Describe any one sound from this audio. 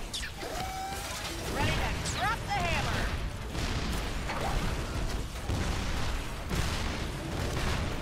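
Magic spells crackle and whoosh in a video game battle.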